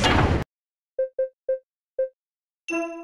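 Short electronic blips sound several times.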